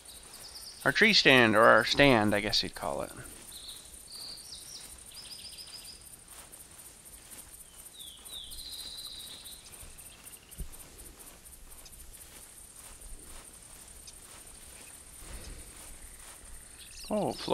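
Footsteps crunch softly on dry ground.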